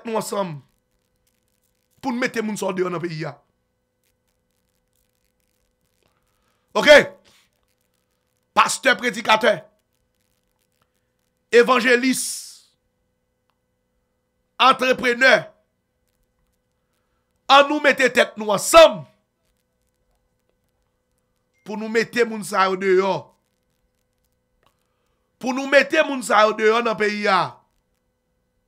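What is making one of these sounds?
A man speaks closely into a microphone in short, emphatic bursts with pauses between.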